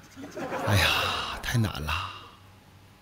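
A woman laughs into a microphone over an online call.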